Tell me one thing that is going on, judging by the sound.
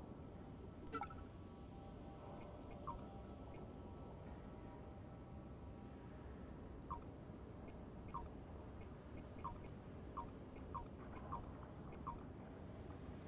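Short electronic beeps sound as menu items are selected.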